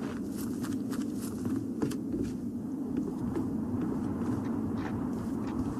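Footsteps thud on a wooden floor at a steady walking pace.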